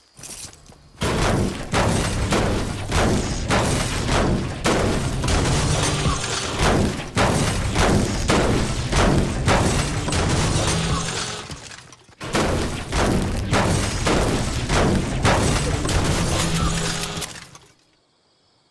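A pickaxe strikes metal again and again in quick blows.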